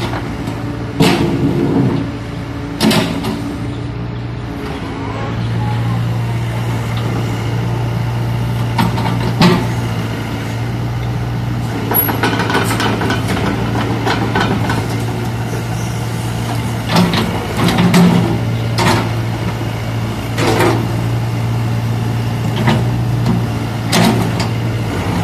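A metal excavator bucket clanks and knocks.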